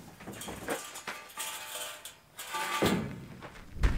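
A metal frame clanks as it is lifted.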